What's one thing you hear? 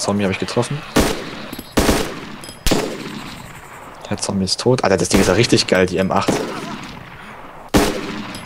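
A rifle fires several loud sharp shots.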